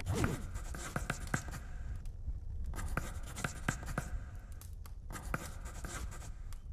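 Short electronic blips sound in quick bursts as game dialogue text types out.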